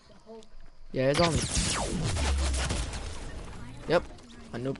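A loud burst of energy whooshes and rumbles.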